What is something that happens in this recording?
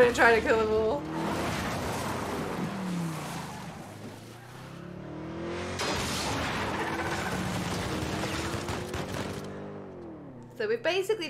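A car engine roars and revs as it speeds away.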